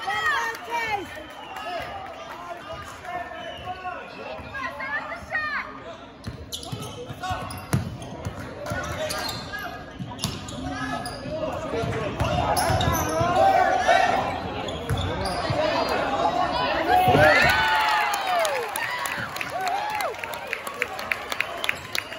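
A crowd of spectators shouts and cheers in an echoing gym.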